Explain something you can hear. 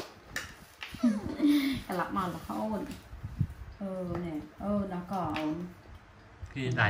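A young woman speaks gently and close by.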